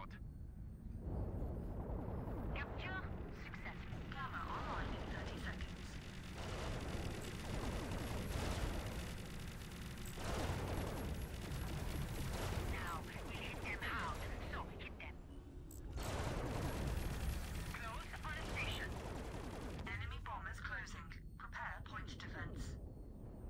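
Heavy space guns fire with deep, rumbling booms.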